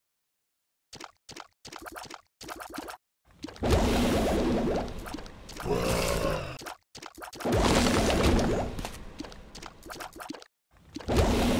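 Small shots pop and splash repeatedly in a video game.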